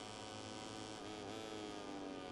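A motorcycle engine changes gear, its pitch dipping and climbing again.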